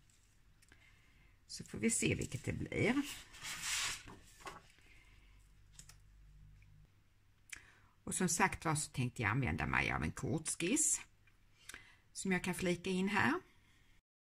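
Sheets of paper rustle as they are handled and set down.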